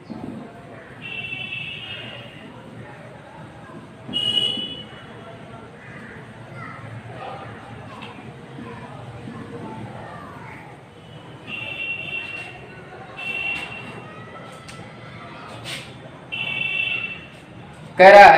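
A marker squeaks on a whiteboard in short strokes.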